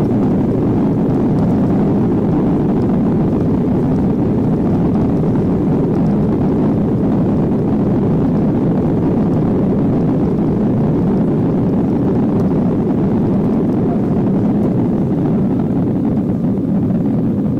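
Jet engines roar steadily, heard from inside an aircraft cabin.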